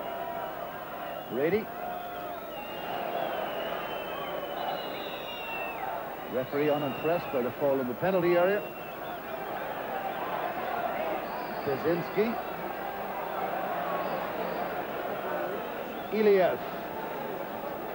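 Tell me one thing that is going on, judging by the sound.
A large crowd murmurs and cheers steadily in an open stadium.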